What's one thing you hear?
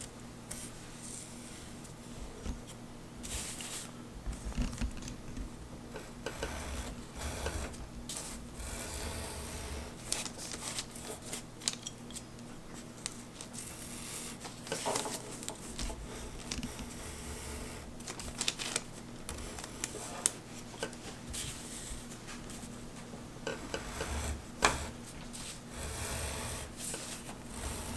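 A knife scrapes and slices through stiff paper.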